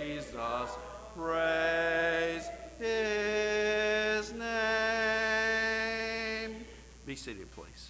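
A man sings a hymn through a microphone.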